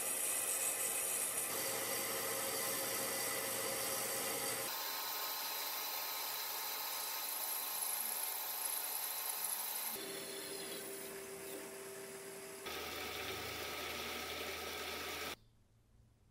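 A metal lathe whirs steadily as a cutting tool shaves metal.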